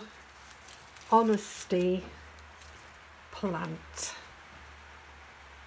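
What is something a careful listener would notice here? A sheet of paper rustles as it is moved about.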